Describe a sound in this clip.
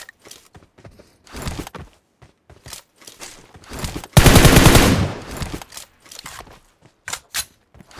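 Footsteps patter quickly over hard ground and grass.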